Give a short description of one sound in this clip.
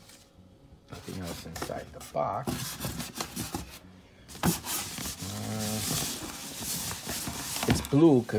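Foam wrapping rustles and crinkles as it is pulled off.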